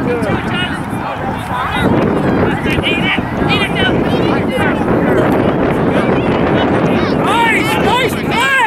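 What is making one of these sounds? Children shout and call out excitedly across an open field outdoors.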